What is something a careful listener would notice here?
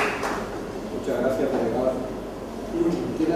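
A woman speaks calmly into a microphone in a large room.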